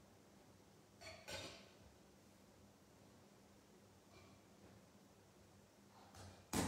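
A metal cup clinks softly against a glass vessel.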